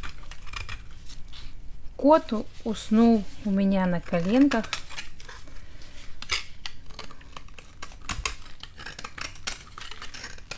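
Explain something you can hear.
A blade scrapes and shaves crumbly material in short strokes.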